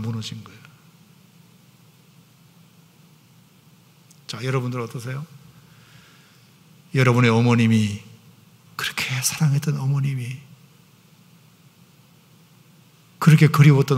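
A middle-aged man speaks slowly and with emphasis through a microphone, pausing between phrases.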